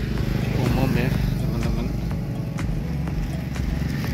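A motorbike passes close by with a humming engine.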